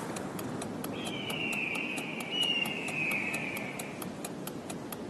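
A small dog whimpers softly.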